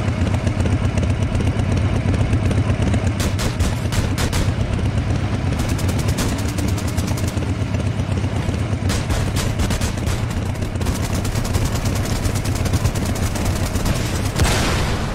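A motorbike engine rumbles steadily.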